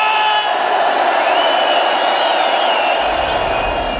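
Men shout with excitement close by.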